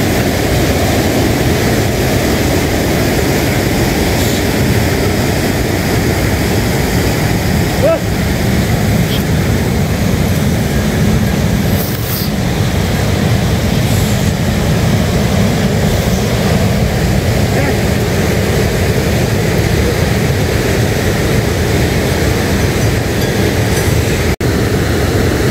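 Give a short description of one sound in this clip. Strong wind blows and rumbles outdoors.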